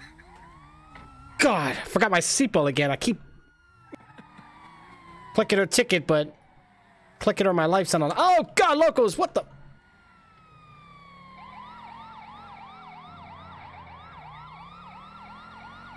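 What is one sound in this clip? A police siren wails and whoops.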